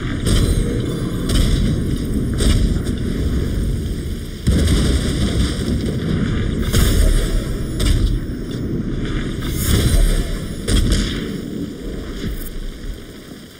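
Arrows thud into targets with sharp impacts.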